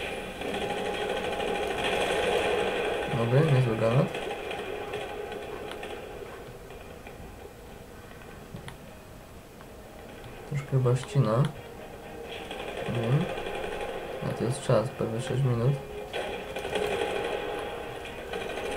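Gunfire from a video game rattles in short bursts.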